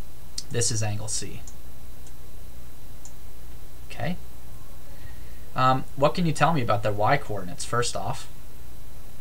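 A man speaks calmly and in short bursts, close to a microphone.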